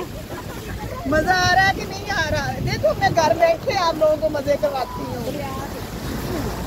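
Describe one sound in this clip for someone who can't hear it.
A woman talks and laughs with animation close by.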